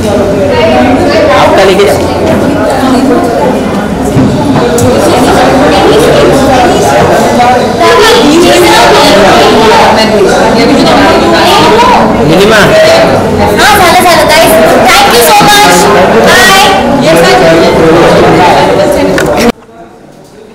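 Several people chatter in the background.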